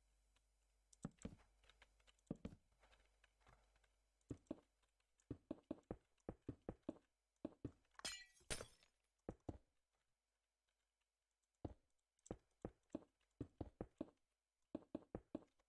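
Blocks are placed with short, soft knocks in quick succession.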